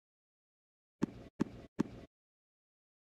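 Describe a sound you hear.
A tennis ball bounces on a hard court before a serve.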